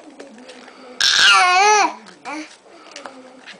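A baby squeals loudly and babbles close by.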